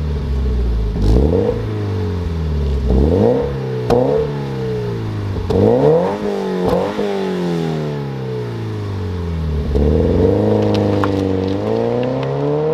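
Exhaust pops and crackles between revs.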